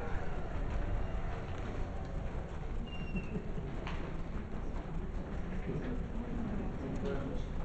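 A man speaks calmly through a microphone, heard from across a room.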